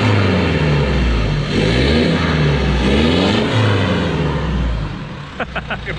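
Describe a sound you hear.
An engine idles loudly close by.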